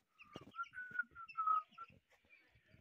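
Small birds chirp nearby.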